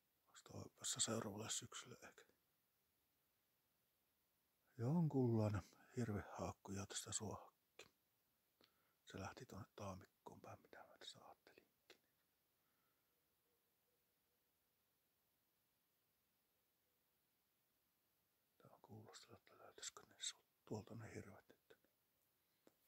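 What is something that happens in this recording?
A man speaks calmly and close by, with long pauses.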